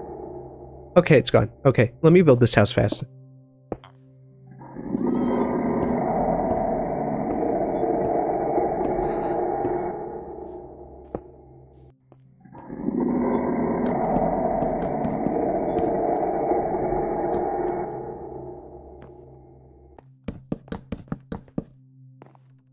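Stone blocks are set down with short, dull knocks.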